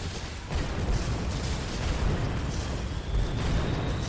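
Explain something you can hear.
Laser beams zap and hum.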